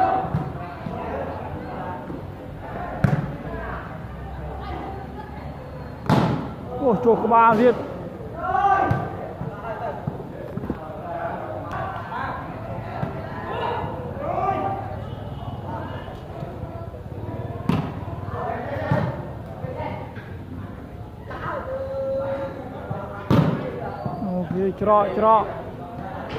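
A crowd of men shouts and cheers.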